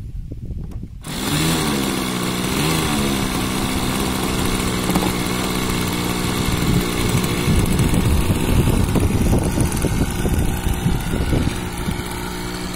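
A small model airplane engine sputters to life, revs up and down, then buzzes loudly and steadily.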